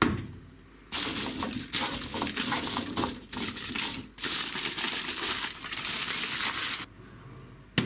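Aluminium foil crinkles and rustles as it is folded by hand.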